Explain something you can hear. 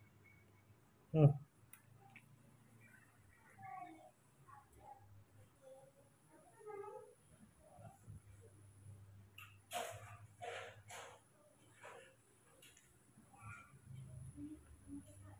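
A baby monkey gives soft, high squeaks.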